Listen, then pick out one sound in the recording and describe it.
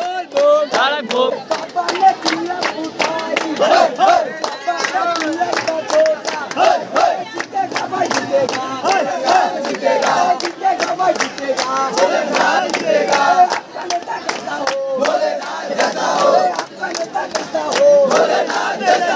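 A crowd of young men chants loudly and excitedly up close.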